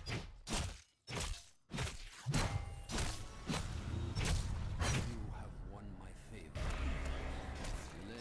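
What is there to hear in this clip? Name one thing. Game spells and weapons clash and burst in quick succession.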